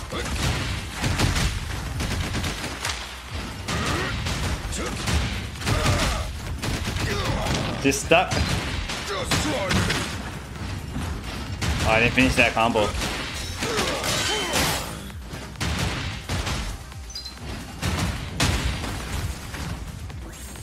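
Sword slashes whoosh and clang in quick, repeated bursts.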